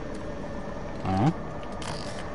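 A weapon is switched with a sharp metallic clack.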